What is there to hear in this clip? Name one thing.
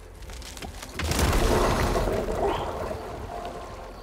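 Water splashes loudly as someone wades through it.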